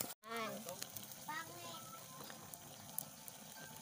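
A wood fire crackles under a pot.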